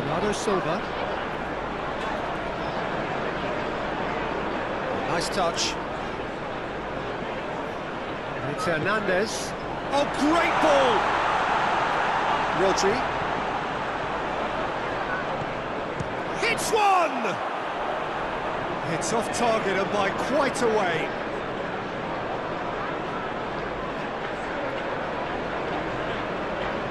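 A large stadium crowd roars steadily, swelling louder for a while.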